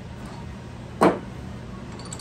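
A hard object knocks once against metal, close by.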